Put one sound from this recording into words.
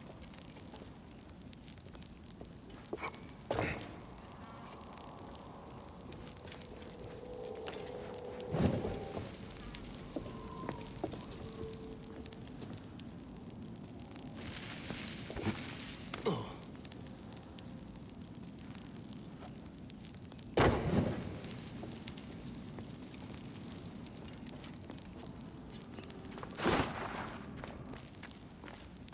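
Footsteps thud and creak on wooden boards.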